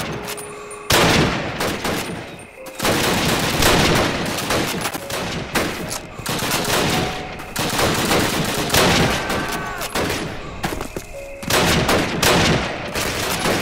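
Gunfire cracks and booms repeatedly all around.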